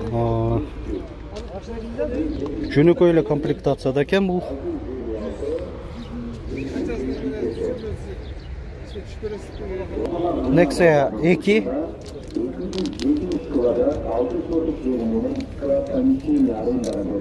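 A man talks steadily and with animation close by.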